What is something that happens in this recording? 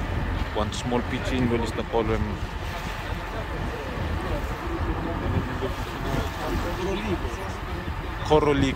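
A young man speaks nearby.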